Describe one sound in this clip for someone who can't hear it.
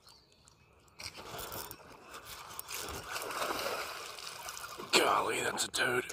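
A fish splashes and thrashes at the water's surface close by.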